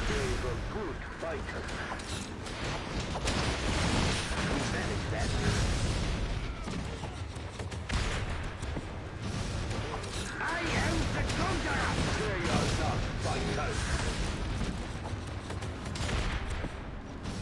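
Explosions boom and gunfire rattles.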